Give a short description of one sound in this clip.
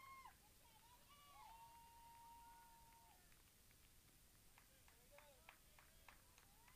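Spectators shout and cheer from a distance outdoors.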